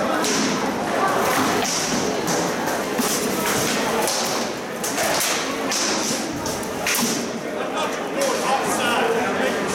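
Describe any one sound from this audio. Weapons clash and thud against shields in sharp, repeated knocks.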